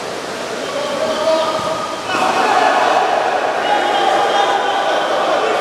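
Water splashes as players thrash and throw.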